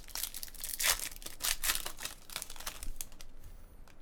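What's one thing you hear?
A foil wrapper crinkles and tears as it is ripped open.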